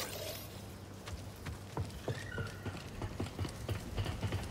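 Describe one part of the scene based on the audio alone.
Footsteps crunch on dirt and metal.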